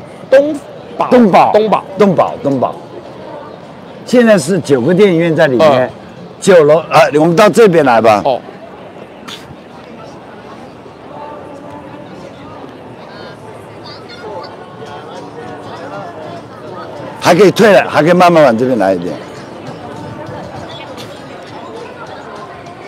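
A busy street hums with distant crowd chatter outdoors.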